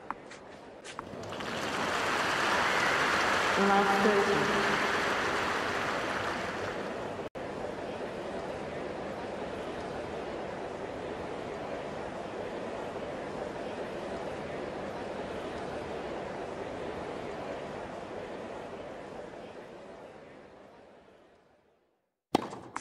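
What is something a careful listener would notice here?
A large crowd cheers and applauds loudly, then slowly fades.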